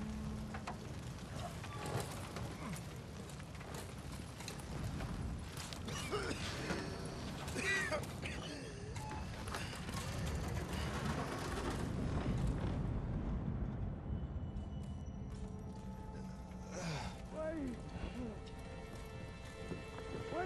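Flames roar and crackle close by.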